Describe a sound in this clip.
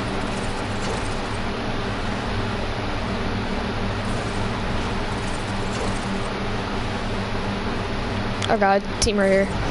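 Wind rushes steadily past a glider.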